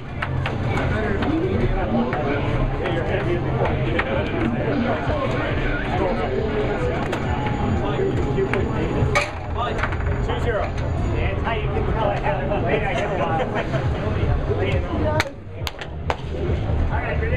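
Several people chatter and shout excitedly nearby.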